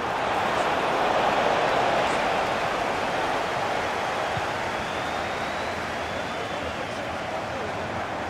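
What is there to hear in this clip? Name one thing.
A large stadium crowd roars steadily throughout.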